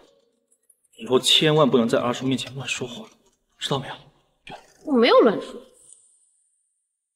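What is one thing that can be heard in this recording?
A young man speaks firmly.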